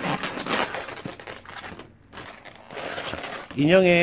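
Rubber balloons squeak and rub as they are twisted by hand.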